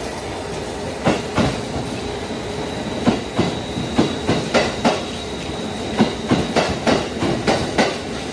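Train wheels clack rhythmically over rail joints as a train rolls past.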